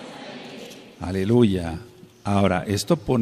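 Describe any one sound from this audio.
An elderly man sings loudly through a microphone.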